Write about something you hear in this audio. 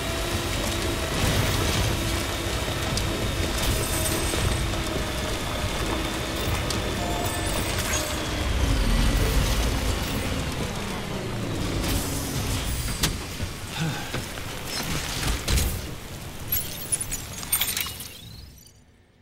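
A vehicle engine hums and rumbles as it drives over rough ground.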